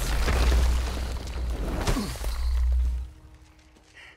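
A heavy body crashes down with a deep rumble.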